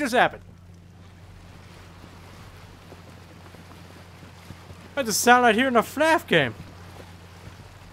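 Water splashes and washes against the bow of a moving boat.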